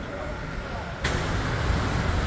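Vans drive slowly along a street outdoors.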